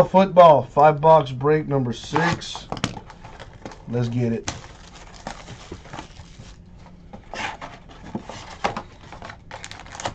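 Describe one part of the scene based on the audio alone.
Plastic wrap crinkles as hands handle a box.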